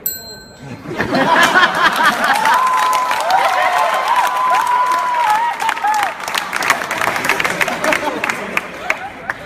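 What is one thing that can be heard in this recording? A crowd of young people laughs and cheers loudly.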